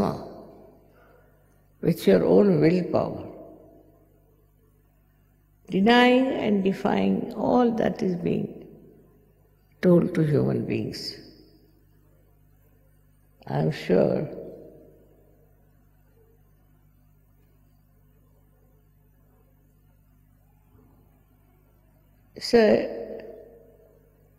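An elderly woman speaks slowly and calmly into a microphone, with long pauses and a slight echo.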